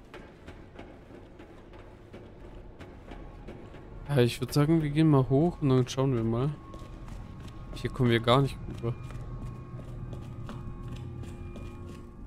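Footsteps thud on hard floors and stairs.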